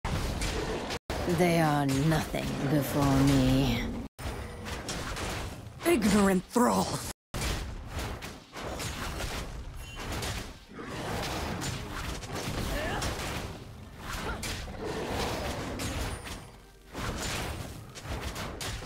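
Fantasy combat effects clash and whoosh in quick bursts.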